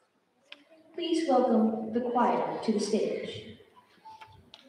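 A young woman speaks clearly in an echoing hall.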